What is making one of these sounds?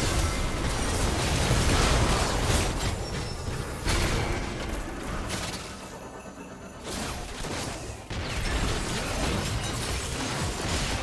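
Game combat effects crackle and burst with magical blasts.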